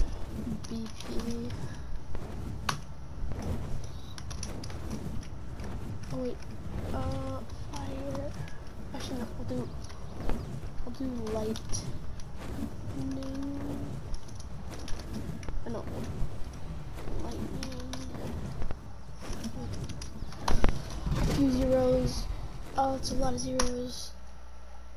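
Large winged creatures screech and roar.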